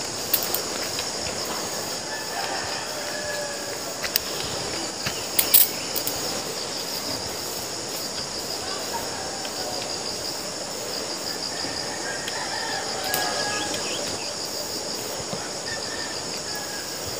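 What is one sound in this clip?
Grass and leaves rustle as a man walks through them.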